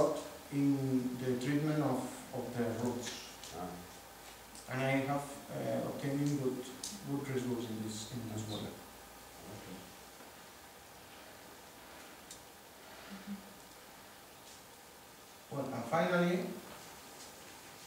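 A man speaks calmly through a microphone in an echoing room.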